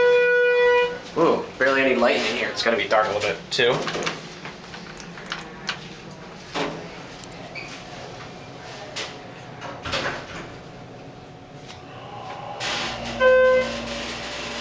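An elevator chime rings with a clear electronic tone.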